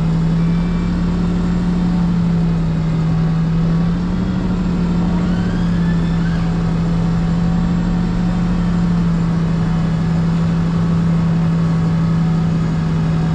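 Truck tyres roll slowly over pavement.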